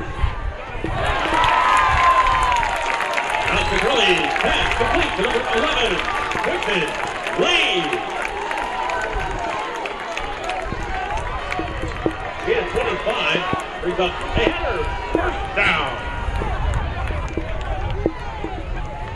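A large crowd in a stadium cheers and roars.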